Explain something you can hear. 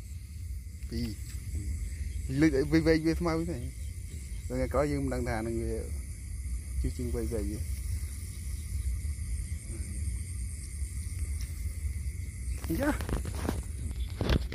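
Dry grass rustles as hands push through it.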